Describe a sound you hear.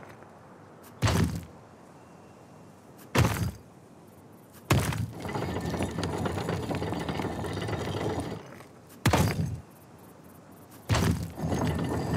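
Stone pieces lock into place with heavy clunks.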